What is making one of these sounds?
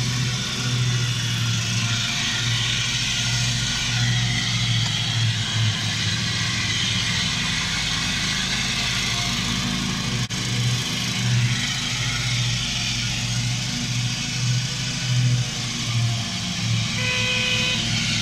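A ride-on lawn mower engine drones steadily nearby.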